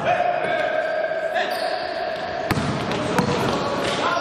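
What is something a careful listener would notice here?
A basketball bounces on the floor with loud thuds.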